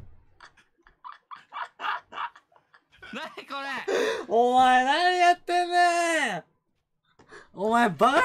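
A young man talks and sings out with animation close to a microphone.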